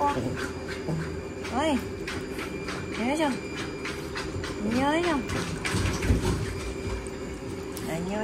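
Water splashes and laps as a small dog paddles.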